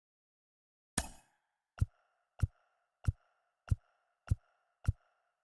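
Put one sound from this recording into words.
A menu ticks with short clicks as choices move.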